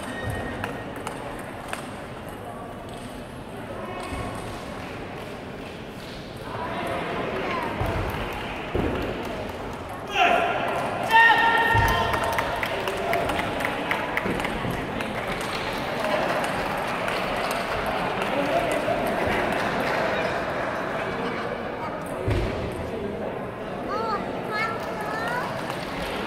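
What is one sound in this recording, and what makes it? A table tennis ball is struck back and forth by paddles in a large echoing hall.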